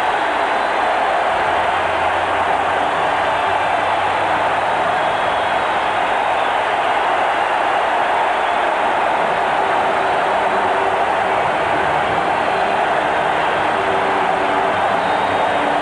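A large crowd roars and cheers in a big stadium.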